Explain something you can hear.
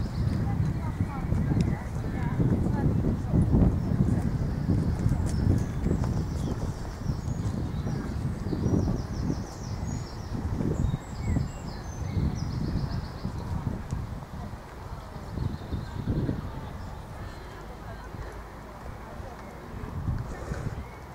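Horse hooves thud softly on sand in a steady rhythm.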